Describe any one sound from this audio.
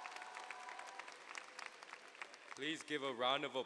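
A crowd claps softly.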